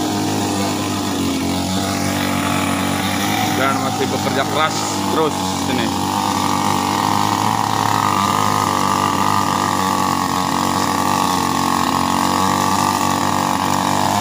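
A chainsaw engine idles steadily nearby.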